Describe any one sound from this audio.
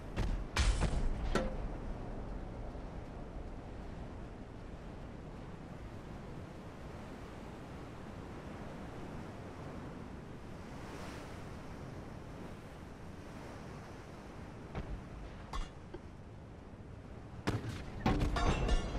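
Sea waves wash steadily.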